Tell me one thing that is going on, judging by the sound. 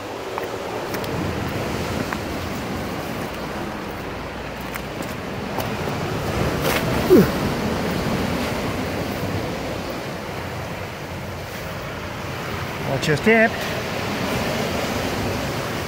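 Waves crash and surge against rocks.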